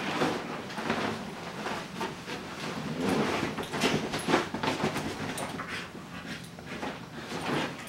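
Bedding rustles as a dog shifts about on it.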